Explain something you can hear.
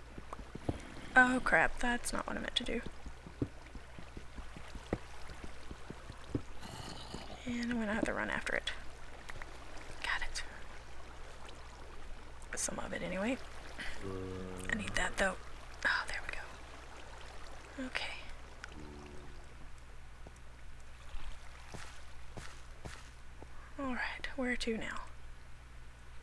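A young woman talks casually into a nearby microphone, in short bursts.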